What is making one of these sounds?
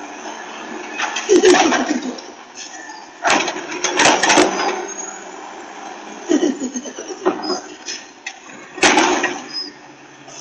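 A garbage truck's lifting arm clanks and bangs as it dumps a bin.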